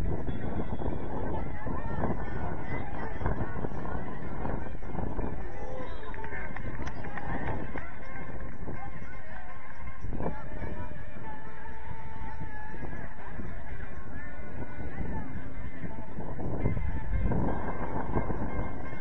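Players shout and call to each other across an open field.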